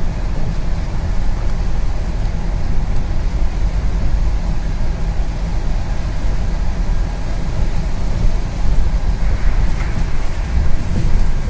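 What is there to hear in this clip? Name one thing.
A bus engine rumbles steadily from inside the bus as it drives along.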